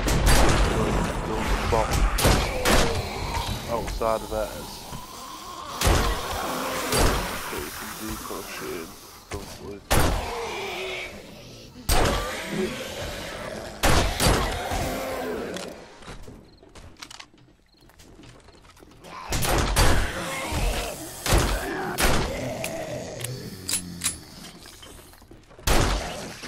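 Gunshots fire in loud bursts, ringing out.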